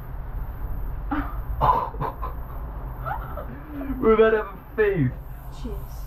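A young woman exclaims excitedly close by.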